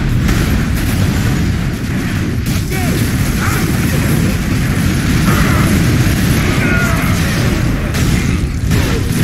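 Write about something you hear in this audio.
Jet thrusters roar.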